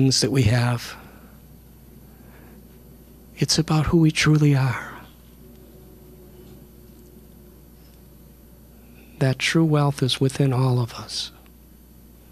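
A middle-aged man speaks calmly into a microphone in short phrases, with pauses.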